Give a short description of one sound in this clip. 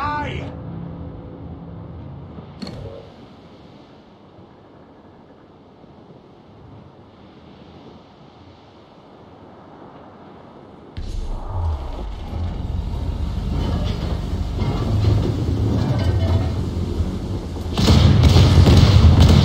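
Wind gusts strongly over the open sea.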